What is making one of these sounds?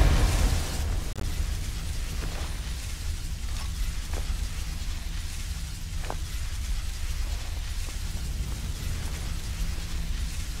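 A magic spell hums and crackles steadily.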